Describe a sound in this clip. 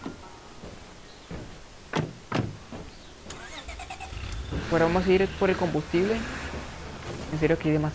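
A car engine idles and revs.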